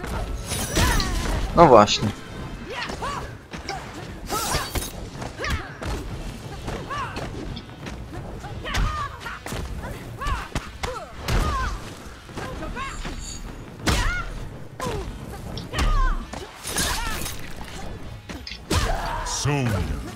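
Fighters grunt and cry out with each strike.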